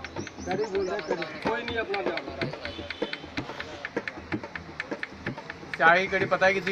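A man beats a hand drum in a quick rhythm nearby.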